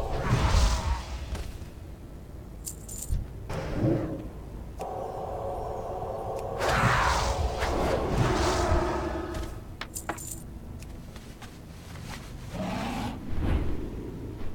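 Magic blasts and combat effects crash and whoosh.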